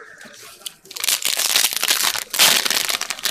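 A foil wrapper crinkles and tears loudly.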